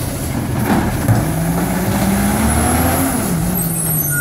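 A hydraulic arm whines as it lifts and tips a bin.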